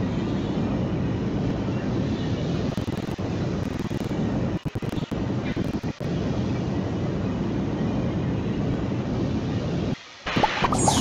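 A rocket engine roars with a steady, low rumble.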